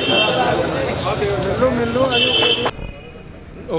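A middle-aged man speaks into a phone close by, with animation.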